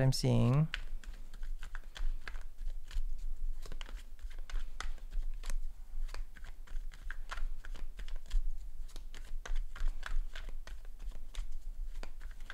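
Cards shuffle and tap softly in a man's hands.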